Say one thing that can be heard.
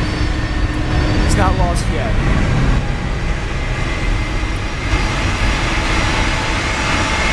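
Jet engines roar steadily nearby.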